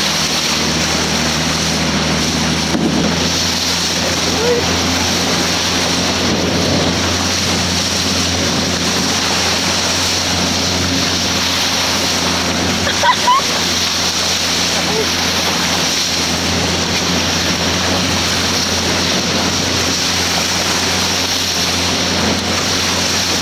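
Dolphins splash as they break the surface beside a boat.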